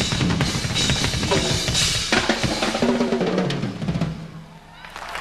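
A drum kit is played loudly with pounding drums and crashing cymbals.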